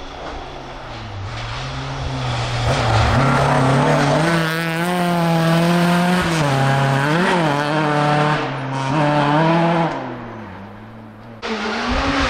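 A rally car engine roars loudly as the car speeds past and revs through the gears.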